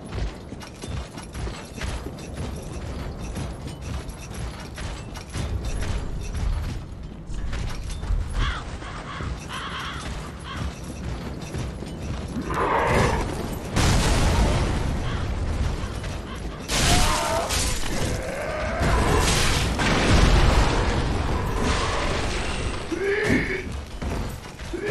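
Armoured footsteps crunch over stone and grass.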